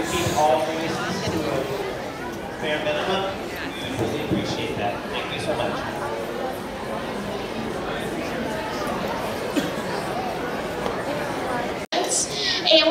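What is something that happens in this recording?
A crowd of people murmurs and chatters in a large room.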